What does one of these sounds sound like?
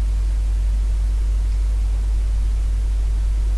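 Paper rustles softly as hands fold it.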